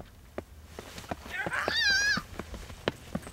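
A young woman shrieks loudly close by.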